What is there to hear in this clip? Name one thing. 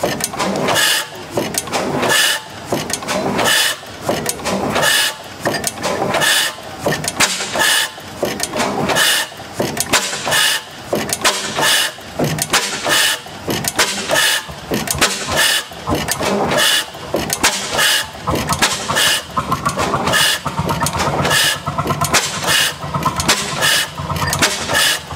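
A large old gas engine thumps and clanks steadily as its flywheel turns.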